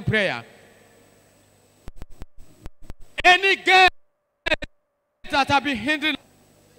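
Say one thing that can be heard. A man speaks with emphasis into a microphone, his voice carried over loudspeakers.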